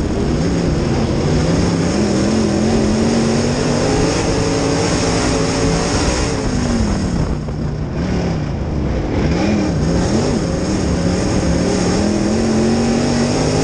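A race car engine roars loudly up close, its pitch rising and falling as the driver accelerates and lifts off.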